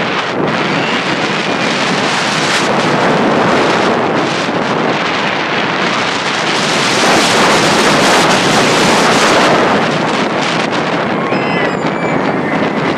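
Wind roars loudly past at high speed.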